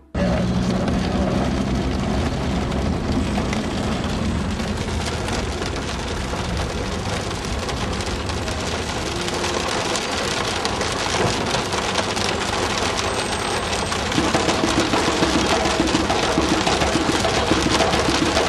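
A car engine hums as it drives over a rough road.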